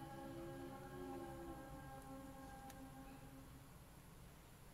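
Electronic tones ring out and slowly fade.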